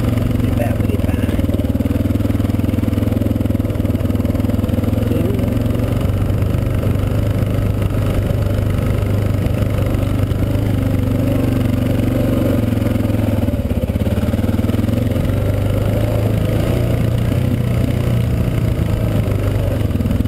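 A motorbike engine drones steadily up close, rising and falling with the throttle.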